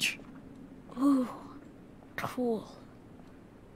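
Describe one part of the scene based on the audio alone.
A boy speaks quietly.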